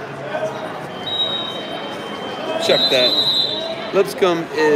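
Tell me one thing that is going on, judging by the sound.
A referee's whistle blows in short bursts.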